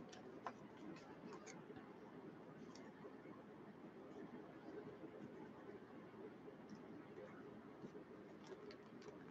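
Plastic card sleeves crinkle and tap under fingers.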